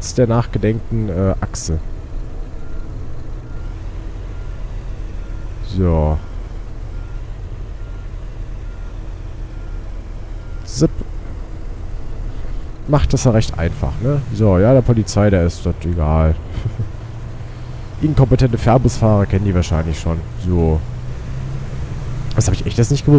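A bus engine hums low and steadily.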